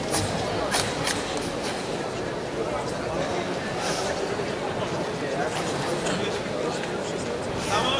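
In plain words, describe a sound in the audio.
Bare feet stamp on a mat.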